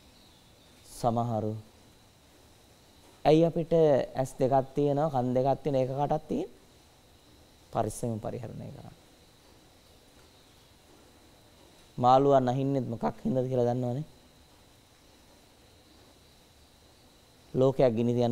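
A man speaks calmly and close by, with pauses.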